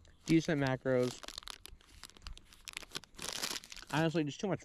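A plastic wrapper crinkles and rustles in hands.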